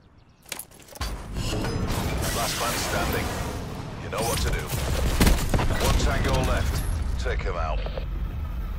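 Heavy explosions boom and rumble one after another.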